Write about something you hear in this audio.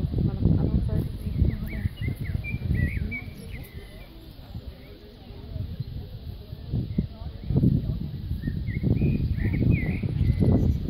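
A horse's hooves thud softly on sand at a walk.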